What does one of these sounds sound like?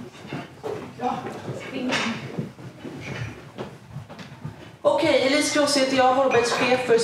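A woman speaks calmly to an audience through a microphone and loudspeakers.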